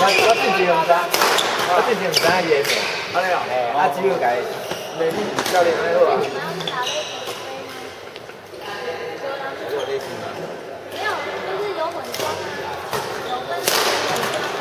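Adult men talk and call out casually across the court.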